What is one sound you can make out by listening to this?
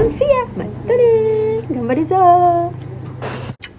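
A young woman speaks with animation in a high, playful voice close by.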